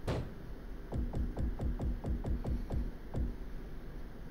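Quick ticks sound as a menu list scrolls.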